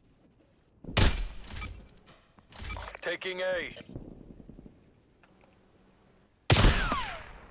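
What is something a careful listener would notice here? A sniper rifle fires loud single shots that echo.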